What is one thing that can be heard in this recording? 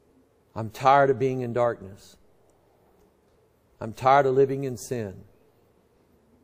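A middle-aged man speaks slowly and earnestly into a microphone, in short phrases with pauses.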